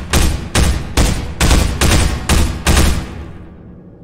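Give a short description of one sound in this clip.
Rapid gunshots fire in quick succession, ringing through an echoing space.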